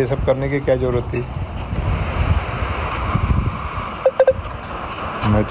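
A man speaks over a phone line.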